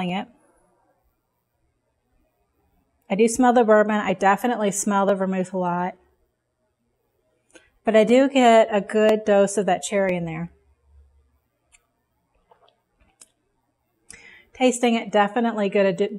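A woman speaks calmly and clearly into a close microphone, in short bursts with pauses.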